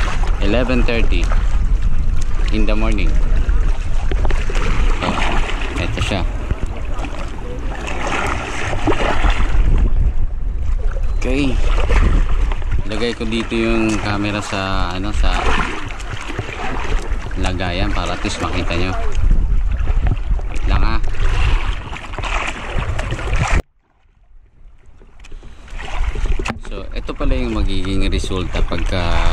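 Water laps and splashes against the side of a small boat.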